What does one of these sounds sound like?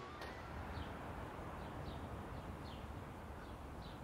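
Water trickles from a tap into a basin.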